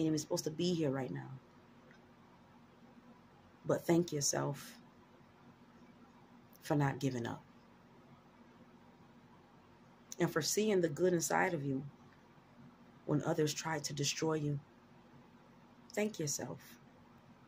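A young woman speaks close to the microphone in short, calm bursts with pauses.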